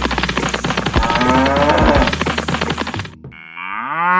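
A toy plough scrapes through loose sand.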